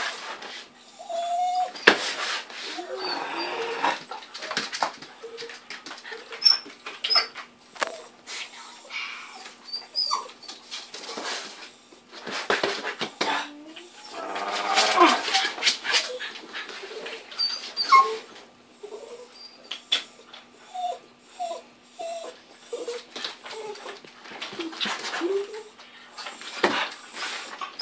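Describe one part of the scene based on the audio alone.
A small dog's claws click and patter on a hard floor.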